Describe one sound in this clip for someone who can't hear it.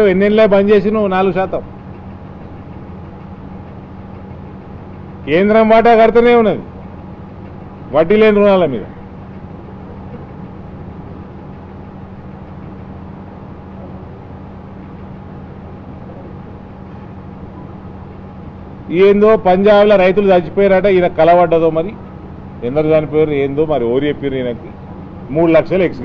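A man speaks with animation into a nearby microphone, in bursts with long pauses.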